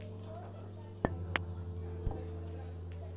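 A cue ball strikes a pack of balls with sharp clacks.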